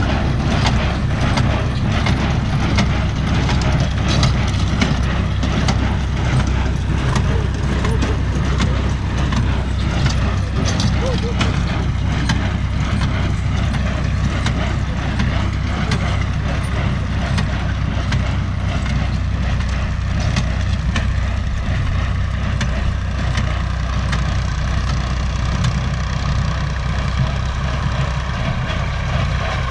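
A hay baler thumps and clatters rhythmically.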